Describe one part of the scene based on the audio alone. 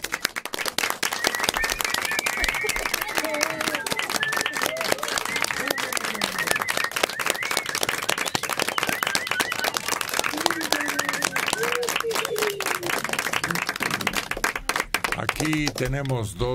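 A small group claps rapidly and steadily.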